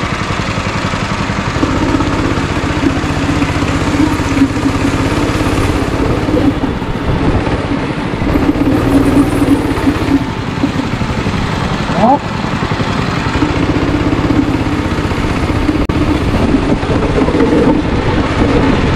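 A go-kart engine buzzes loudly close by, rising and falling as it speeds up and slows.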